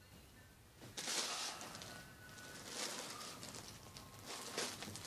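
A soft toy brushes and rustles against plastic.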